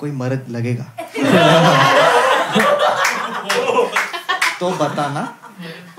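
A woman laughs and speaks through a microphone.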